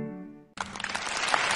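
A violin plays a sustained note that fades away.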